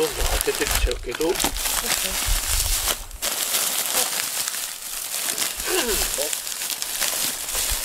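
Plastic wrappers crinkle and rustle.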